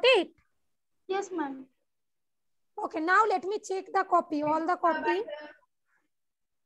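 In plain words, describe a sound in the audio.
A child speaks with animation through an online call.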